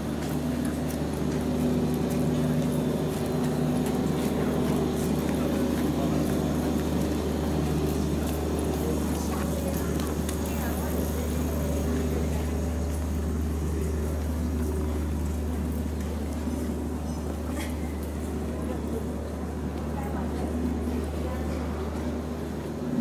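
Footsteps tap on a paved street.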